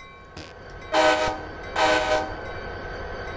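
A train horn sounds two loud blasts close by.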